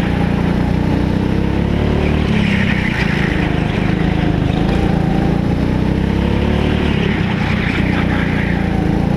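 A small kart engine buzzes loudly and steadily close by.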